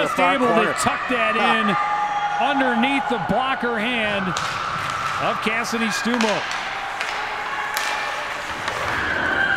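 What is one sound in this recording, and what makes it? A crowd cheers and applauds in an echoing rink.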